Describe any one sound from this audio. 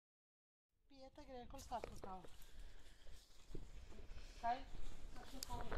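Women talk quietly outdoors.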